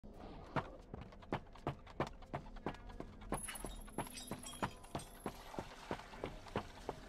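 Footsteps thud quickly and steadily on a wooden floor.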